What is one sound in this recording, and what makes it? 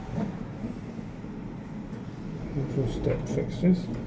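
A finger clicks an elevator button.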